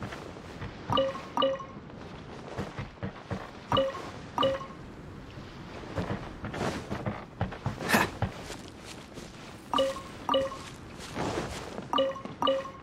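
A bright chime rings several times.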